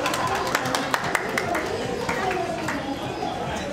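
Several people clap their hands.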